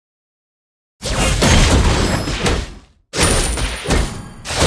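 Fighting effects clash and whoosh in a video game.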